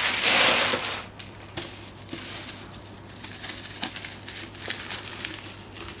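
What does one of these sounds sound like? Bubble wrap crackles as it is handled.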